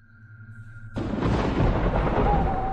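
A loud crackling thunderclap bursts out and rumbles.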